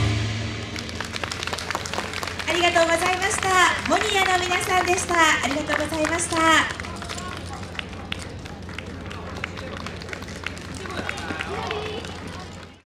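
Wooden hand clappers clack sharply as dancers move.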